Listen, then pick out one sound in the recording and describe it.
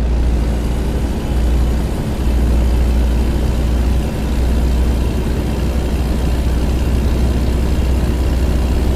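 A truck's diesel engine rumbles steadily while driving.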